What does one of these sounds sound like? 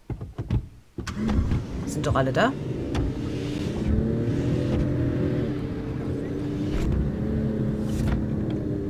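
A car engine starts and hums steadily as the car drives off.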